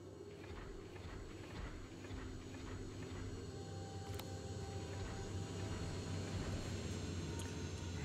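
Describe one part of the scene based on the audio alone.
A low mechanical hum drones and slowly grows louder.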